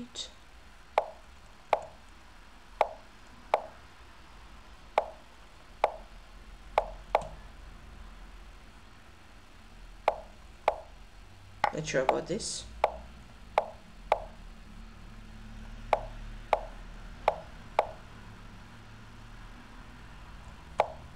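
Short digital clicks sound again and again as chess moves are made.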